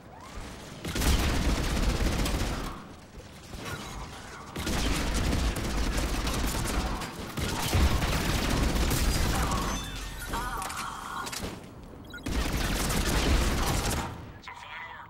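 Gunfire rattles in rapid bursts.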